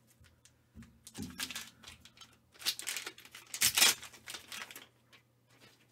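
A plastic card case clacks and rustles in hands.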